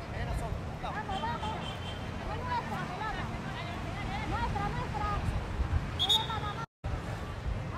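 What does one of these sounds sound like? Players call out to each other across an outdoor field.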